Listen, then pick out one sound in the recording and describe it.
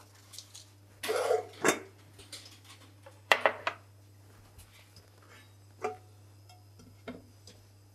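Metal pans clink and clatter on a stovetop.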